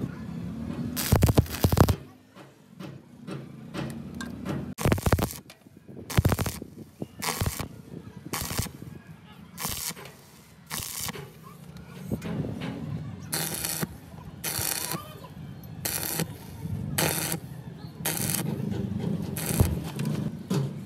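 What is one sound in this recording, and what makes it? An arc welder crackles and buzzes in short bursts.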